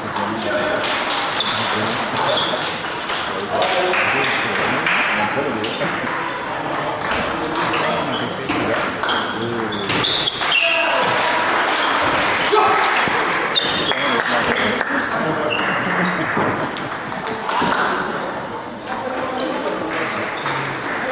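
Many people chatter in the background of a large hall.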